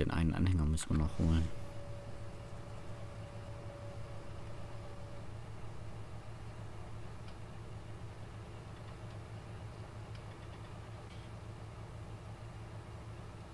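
A tractor engine runs with a low, steady hum.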